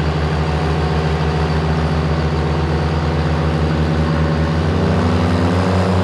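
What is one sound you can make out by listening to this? A truck's engine idles with a loud, deep, rhythmic rumble.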